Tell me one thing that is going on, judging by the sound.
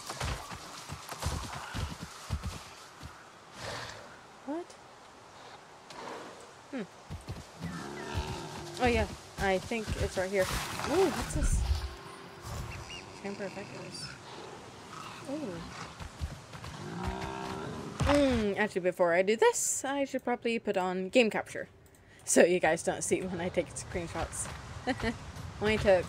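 A large animal's hooves thud on grassy ground as it walks.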